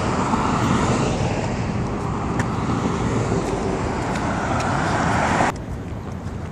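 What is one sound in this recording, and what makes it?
Car tyres hiss along a busy road close by.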